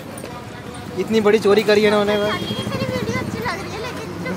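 A young girl talks close by, giggling shyly.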